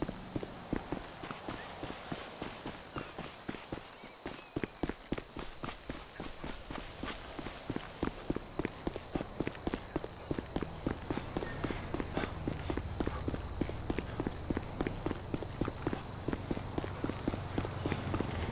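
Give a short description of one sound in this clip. Footsteps crunch steadily over gravel and sand.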